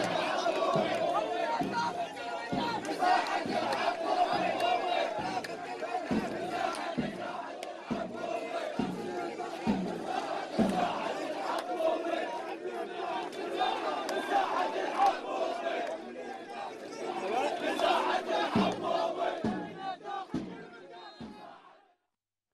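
A large crowd chants loudly outdoors.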